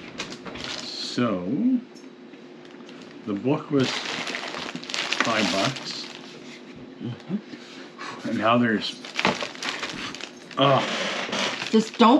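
Paper and plastic wrappers rustle and crinkle as they are handled.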